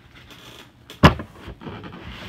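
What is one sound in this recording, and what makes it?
A cardboard box thumps onto a table.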